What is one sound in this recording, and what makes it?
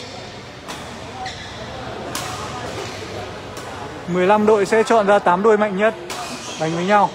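A shuttlecock is struck with sharp smacks, echoing in a large hall.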